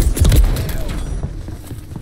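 An explosion booms and debris scatters.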